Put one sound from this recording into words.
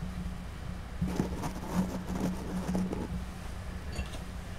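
Objects knock and clatter softly on a desk.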